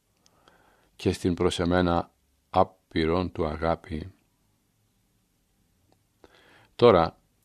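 An older man reads aloud calmly and clearly, close to a microphone.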